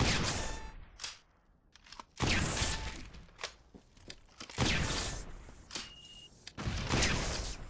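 Gunshots and blasts boom in a video game.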